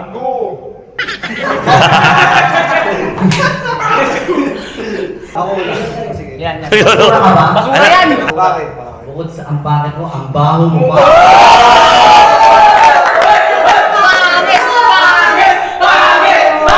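A group of young men laugh and shout loudly.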